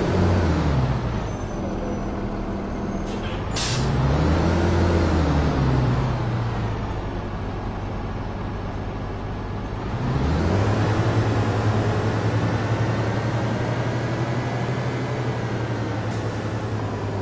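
A diesel city bus engine rumbles as the bus pulls away.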